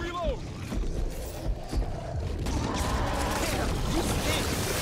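A monster snarls and growls close by.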